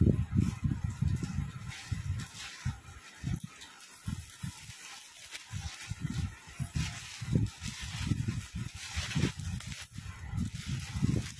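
A young woman speaks calmly close to the microphone.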